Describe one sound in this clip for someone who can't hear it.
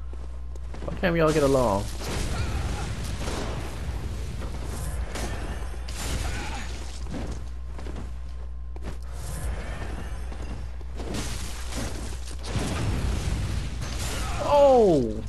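A blade slashes and strikes repeatedly.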